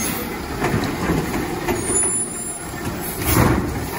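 Trash tumbles and thuds into a garbage truck.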